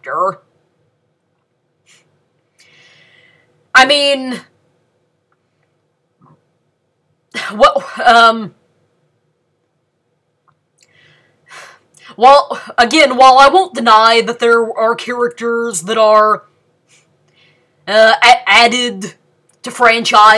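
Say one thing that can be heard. A young woman speaks calmly and close to a microphone, in bursts with pauses.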